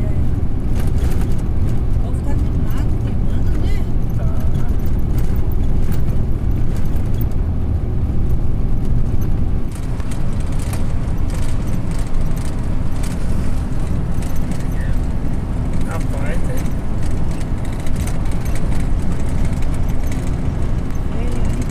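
Wind roars against a moving vehicle.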